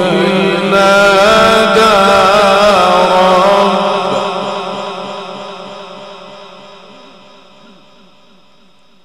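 An elderly man chants in a long, wavering melody through a loudspeaker microphone, with a ringing echo that slowly fades.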